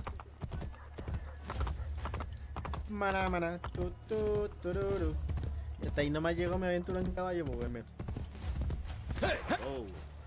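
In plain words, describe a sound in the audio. A horse gallops with rapid hoofbeats.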